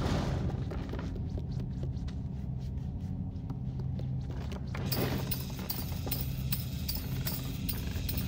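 Small footsteps patter on wooden floorboards.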